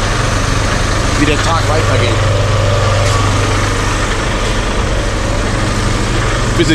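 A truck engine idles nearby with a steady low rumble.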